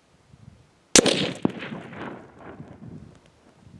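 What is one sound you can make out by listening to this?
A rifle shot cracks loudly and echoes off the hills.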